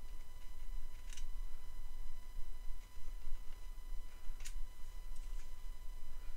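Small wooden blocks click and tap against each other as they are handled.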